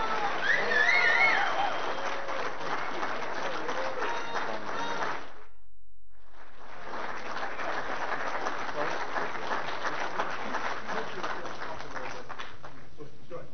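A man talks cheerfully nearby.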